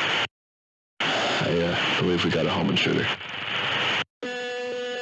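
A man speaks hesitantly over a phone line.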